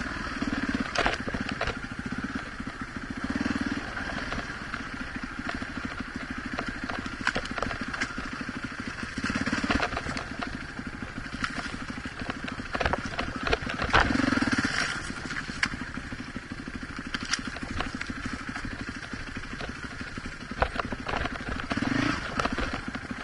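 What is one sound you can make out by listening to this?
Rocks and branches knock and scrape against a dirt bike.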